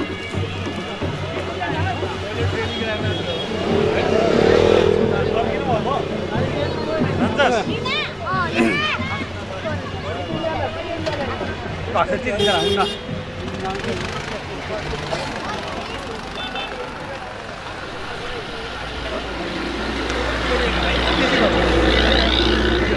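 Footsteps shuffle on a paved road.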